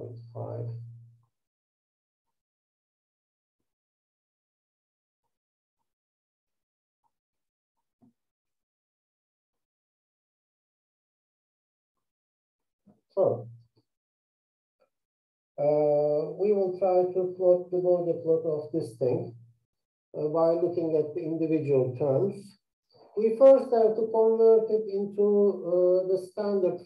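A man talks calmly through a microphone, pausing now and then.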